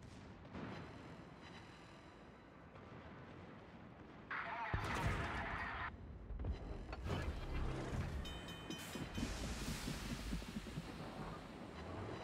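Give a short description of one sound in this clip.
Shells crash into the water with splashes.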